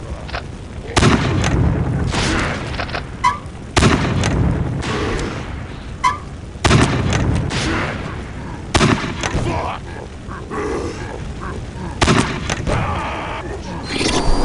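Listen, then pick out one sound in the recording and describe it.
Rockets launch and explode with loud booming blasts.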